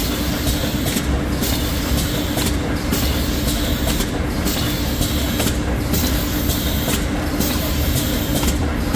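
A machine clicks and clatters at a regular pace.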